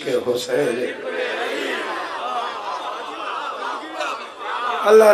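A crowd of men chants loudly together.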